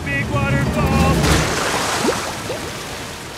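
Water splashes heavily.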